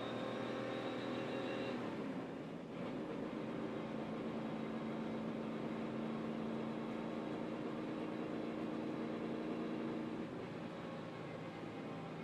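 Wind rushes past a moving car.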